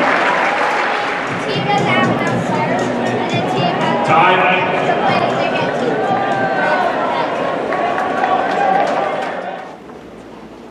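A large crowd of spectators chatters loudly.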